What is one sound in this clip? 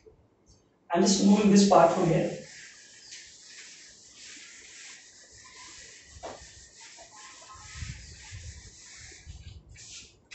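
A cloth wipes across a whiteboard with a soft rubbing hiss.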